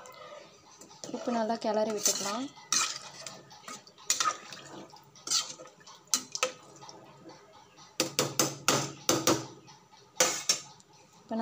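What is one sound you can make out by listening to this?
A metal spoon scrapes and clinks against a pot.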